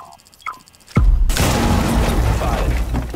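A loud explosion bursts with crackling debris.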